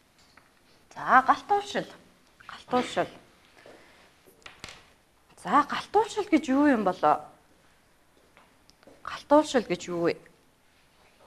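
A young woman speaks clearly through a microphone.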